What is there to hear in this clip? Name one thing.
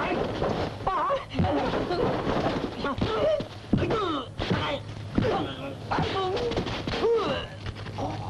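Blows thud during a scuffle.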